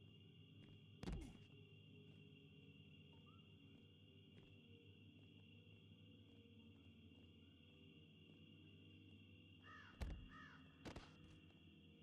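A body slams hard onto the ground with a heavy thud.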